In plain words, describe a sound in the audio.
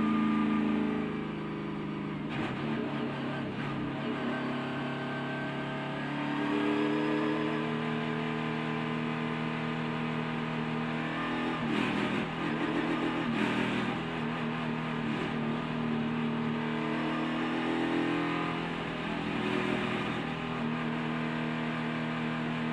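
Other race car engines drone nearby.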